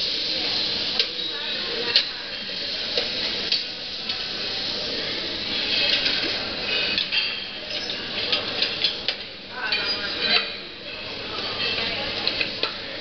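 Metal utensils clink and scrape against pans.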